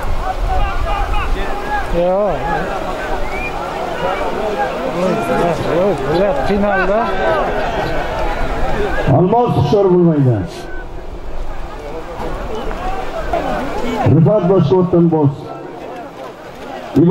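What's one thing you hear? A crowd of men shouts and calls out outdoors.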